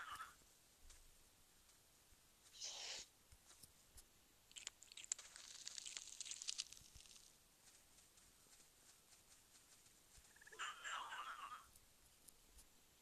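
A cat snarls while fighting a rat.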